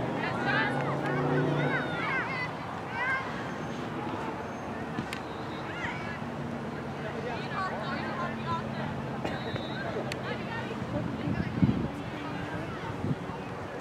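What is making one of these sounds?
Players shout to each other faintly in the distance across an open field.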